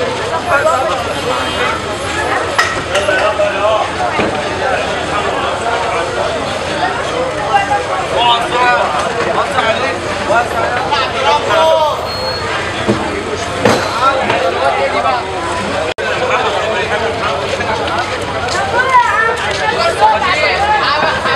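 A crowd of men shout and talk loudly outdoors.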